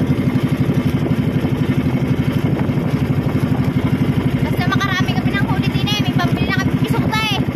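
A boat engine chugs steadily and loudly.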